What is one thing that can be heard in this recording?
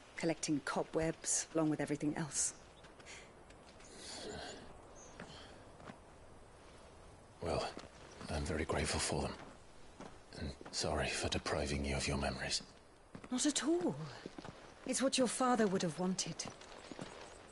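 A young woman speaks gently and close.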